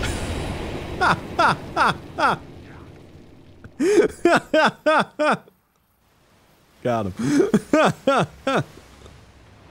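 A young man laughs loudly in bursts close to a microphone.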